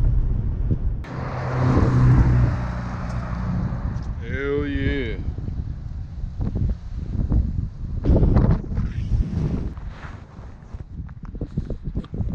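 Wind rushes past a microphone outdoors.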